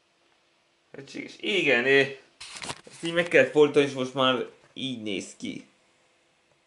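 A man speaks close by, calmly.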